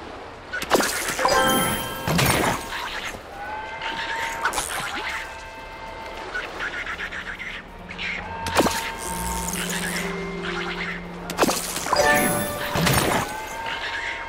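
Bright chimes ring out with a sparkling sweep.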